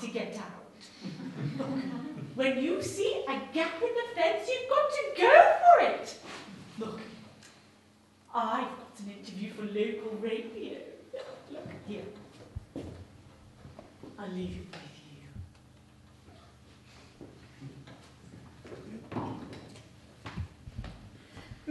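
A man speaks with animation to an audience in an echoing hall.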